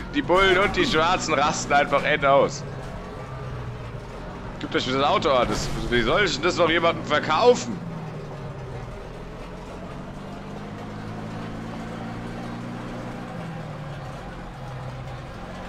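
Tyres hiss on a snowy road.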